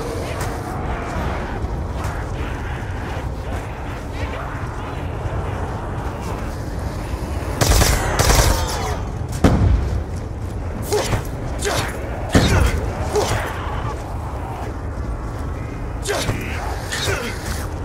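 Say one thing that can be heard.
Zombies growl and snarl nearby.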